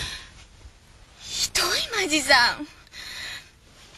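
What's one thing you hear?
A man speaks quietly close by.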